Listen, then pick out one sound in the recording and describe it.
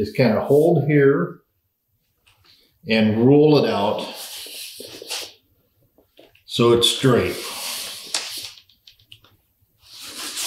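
Plastic-wrapped tubing rustles and scrapes as a man uncoils it.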